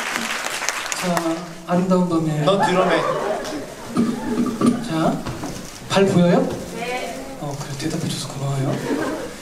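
A young man speaks calmly through a microphone, heard over loudspeakers.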